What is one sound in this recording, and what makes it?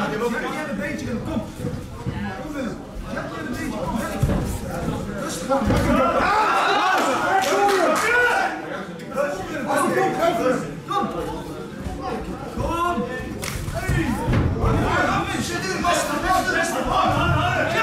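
A crowd of spectators shouts and cheers loudly in an echoing room.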